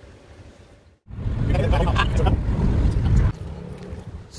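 A car drives along a road with a loud rumble of tyres and wind.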